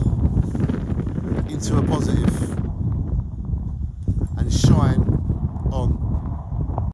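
A man talks casually, close to a microphone.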